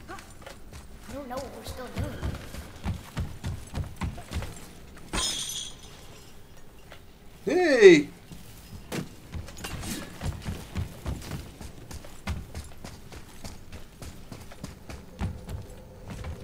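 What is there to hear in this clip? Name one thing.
Heavy footsteps thud on wooden and stone floors.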